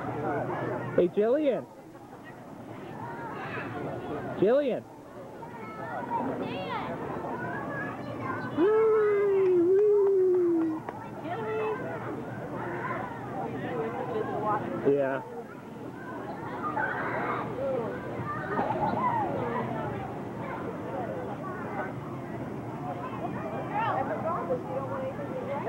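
A little girl babbles and squeals.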